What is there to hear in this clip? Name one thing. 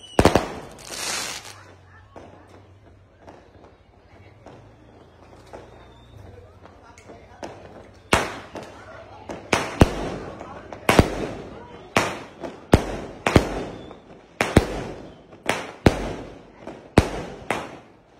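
Fireworks crackle and fizz as they burst.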